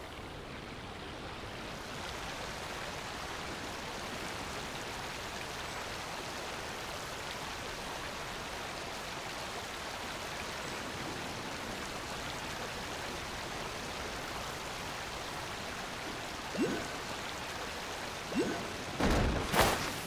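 Water splashes and churns steadily behind a moving boat.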